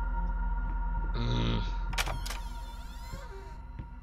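A wooden door creaks open.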